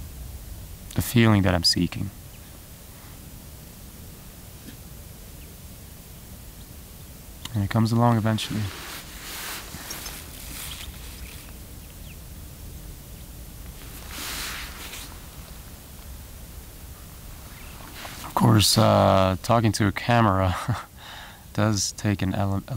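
A young man speaks calmly close by, in short bursts.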